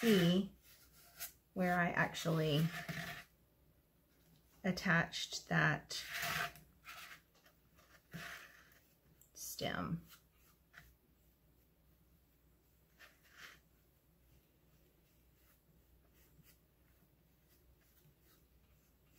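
Fingers softly dab and pat at a hollow pumpkin.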